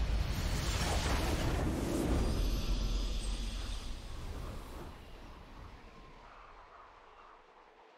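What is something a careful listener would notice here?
A triumphant victory fanfare swells and then fades out.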